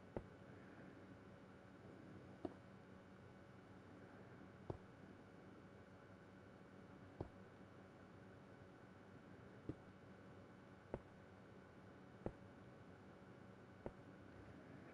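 Footsteps tap on stone at a slow, even pace.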